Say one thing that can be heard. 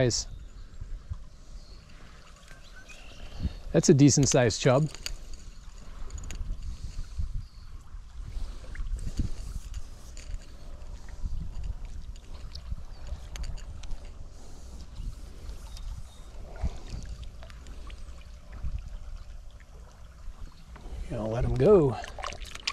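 A small fish splashes at the water's surface.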